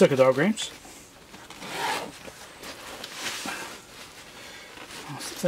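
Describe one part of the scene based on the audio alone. A zipper is pulled open on a fabric bag.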